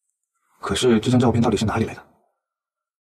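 A young man asks a question in a low, worried voice.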